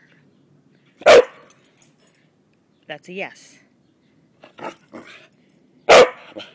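A small dog barks sharply.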